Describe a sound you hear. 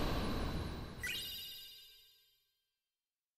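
A bright chime rings out and slowly fades.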